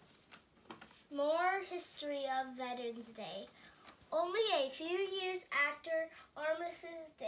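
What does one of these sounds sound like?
A young girl speaks close by with animation.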